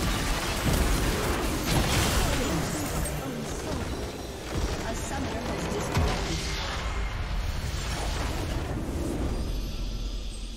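Game spells and blasts crash and boom in a loud, busy fight.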